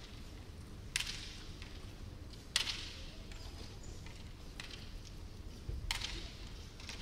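Bamboo swords clack together in a large echoing hall.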